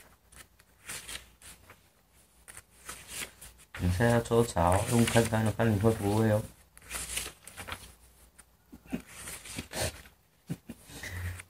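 Book pages rustle as they are turned by hand.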